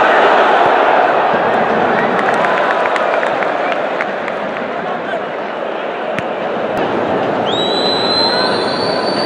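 A large crowd roars and cheers in a big open stadium, loudest at first and easing off.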